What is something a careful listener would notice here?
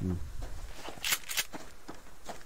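A pump-action shotgun is racked with a sharp metallic clack.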